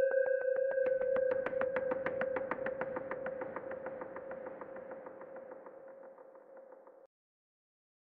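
A synthesizer plays a fast pulsing electronic tone that slowly fades away.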